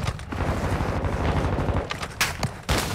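Footsteps thud quickly on soft ground.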